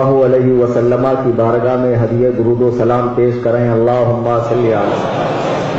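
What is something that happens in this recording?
A man chants in a drawn-out, melodic voice through a microphone.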